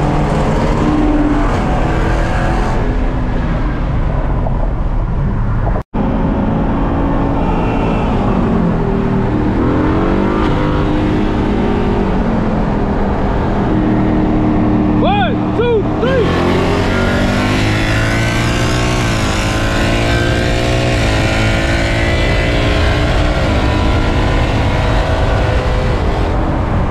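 A car engine roars loudly, revving up and down as the car speeds along.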